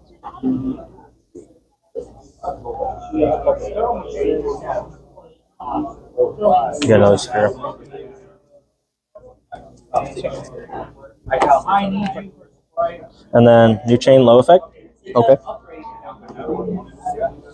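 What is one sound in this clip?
Playing cards shuffle and slap lightly on a table.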